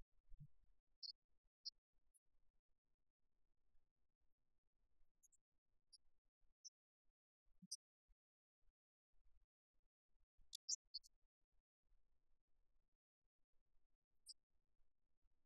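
Sports shoes squeak briefly on a hard court floor.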